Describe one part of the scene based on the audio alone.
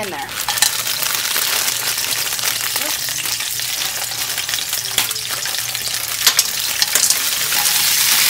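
A plastic bag crinkles as food is poured out.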